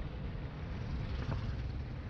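A motorcycle passes by on the road.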